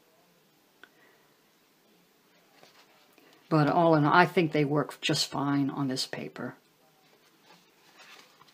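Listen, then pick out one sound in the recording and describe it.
Paper rustles as a book is turned over and handled.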